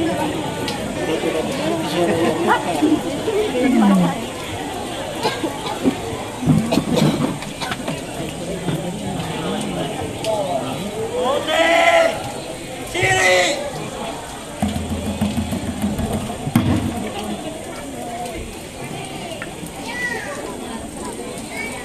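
Young performers shout and chant loudly.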